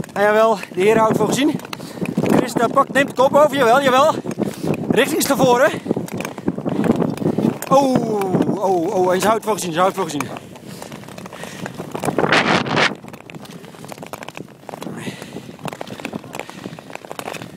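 Ice skates scrape and hiss across ice.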